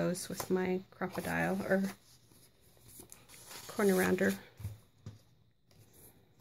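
Paper cards rustle as they are handled.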